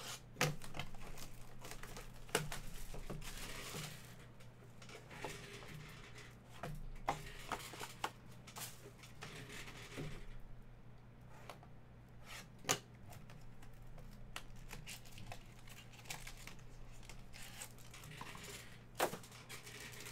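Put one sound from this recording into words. A cardboard box knocks against a table.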